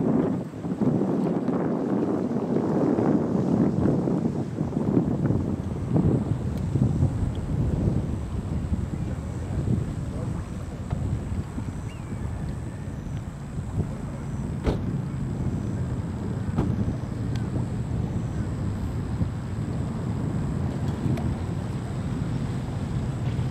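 Wind gusts buffet the microphone outdoors, strongest at first and then steadier.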